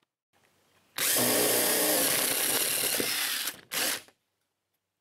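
A cordless drill whirs, boring into wood.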